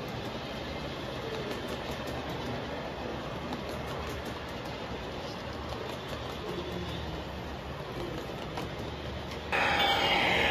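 A model train rumbles steadily along its track close by.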